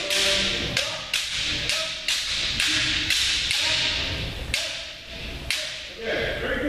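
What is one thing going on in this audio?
Bamboo swords clack sharply against each other in a large echoing hall.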